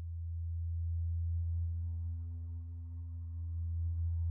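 A brighter synthesizer tone swells in over the drone.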